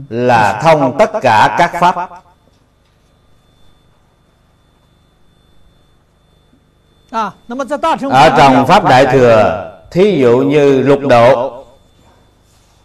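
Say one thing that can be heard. An elderly man speaks calmly and slowly into a close microphone, pausing between phrases.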